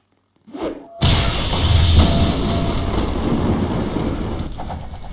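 Electric energy crackles and booms.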